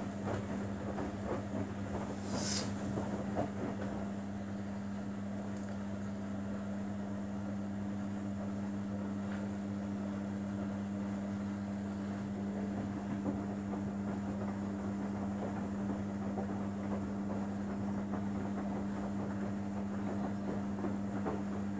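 Wet laundry tumbles and sloshes in water inside a washing machine drum.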